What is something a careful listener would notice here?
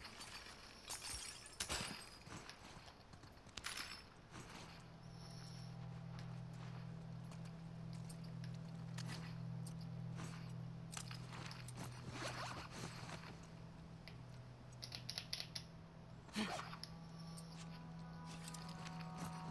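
Footsteps scuff and crunch softly over debris on a tiled floor.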